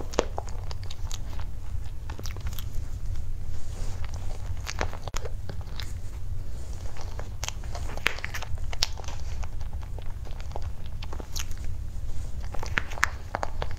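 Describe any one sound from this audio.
A spoon scrapes and clinks against a plastic cup.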